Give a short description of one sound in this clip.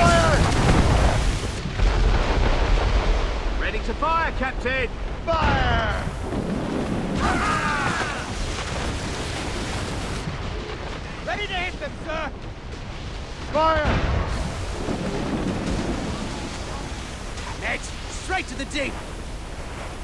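Strong wind howls.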